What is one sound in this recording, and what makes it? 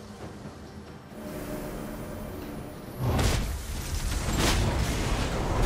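Video game combat effects whoosh and crackle as characters fight.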